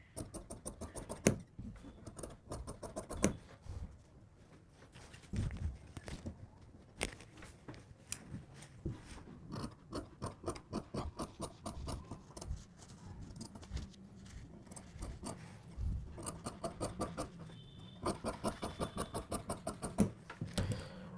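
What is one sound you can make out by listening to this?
Scissors snip rapidly through fabric and paper.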